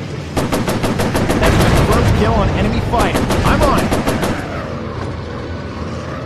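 A propeller engine drones steadily.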